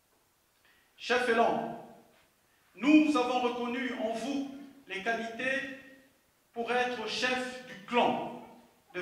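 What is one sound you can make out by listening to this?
A man calls out loudly through a microphone in a large echoing hall.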